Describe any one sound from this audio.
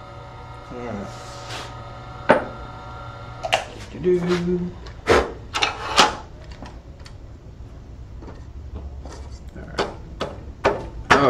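Metal tools clack and knock against the lathe.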